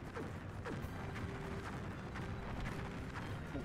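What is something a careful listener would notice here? Fiery blasts whoosh and crackle in a video game battle.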